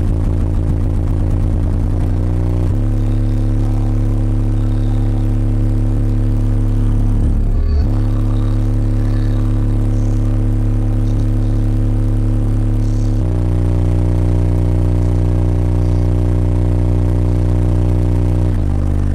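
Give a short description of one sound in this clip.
Subwoofers boom loudly with deep, steady bass tones that shift pitch every few seconds.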